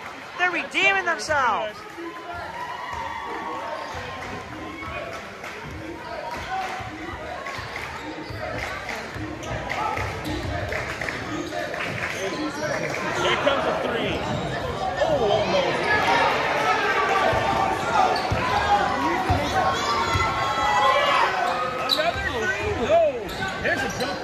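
A crowd talks and cheers in a large echoing gym.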